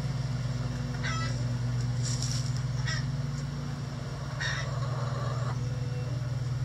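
A hen clucks softly nearby.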